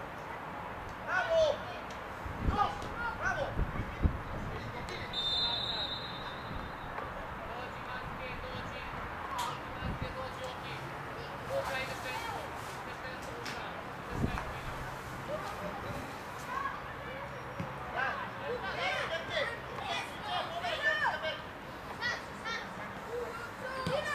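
Young players shout and call out across an open outdoor field.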